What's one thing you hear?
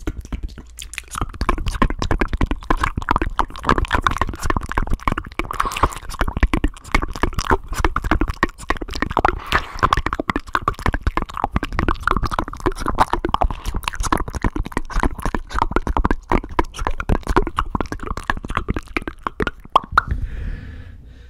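Hands rub and tap close against a microphone, making dense crackling and thumping.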